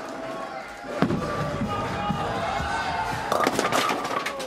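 A bowling ball rumbles down a lane.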